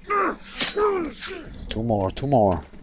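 A blade stabs into flesh with wet thuds.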